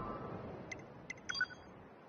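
Short electronic beeps sound as a menu is opened.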